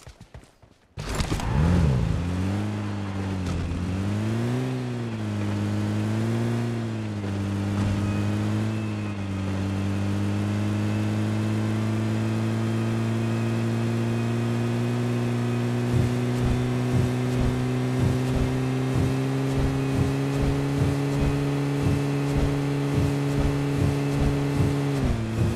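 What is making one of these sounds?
An engine starts and revs as a vehicle drives over rough ground.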